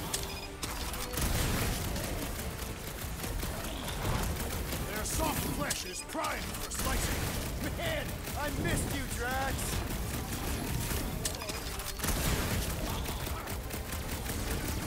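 Game combat sounds thud and clash with electronic effects.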